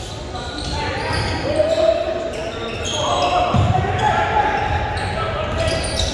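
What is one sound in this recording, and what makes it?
Basketball shoes squeak on a hardwood floor.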